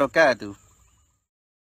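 A man speaks briefly and close up.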